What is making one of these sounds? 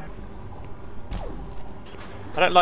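A plasma gun fires a buzzing shot.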